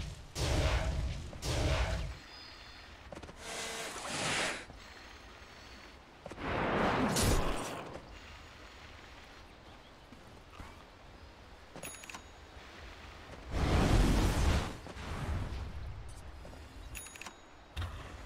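Magic spells whoosh and crackle in short bursts.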